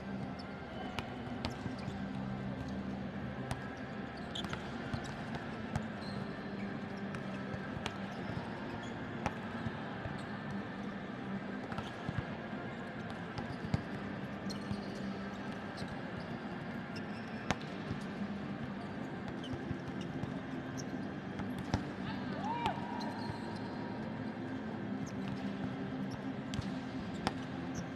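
A volleyball is struck sharply again and again in a large echoing hall.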